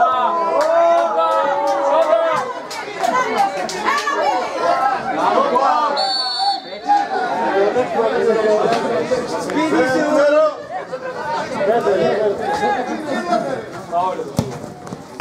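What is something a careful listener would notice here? A football thuds off a player's foot.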